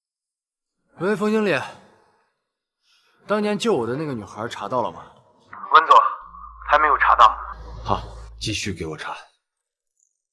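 A young man speaks on a phone outdoors, questioning with some urgency.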